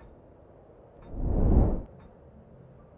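A soft whoosh sweeps past.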